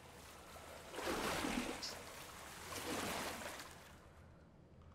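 Water sloshes as someone wades through it.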